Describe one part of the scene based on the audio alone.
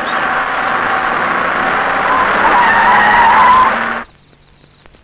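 A jeep engine roars as the vehicle drives up and brakes to a stop.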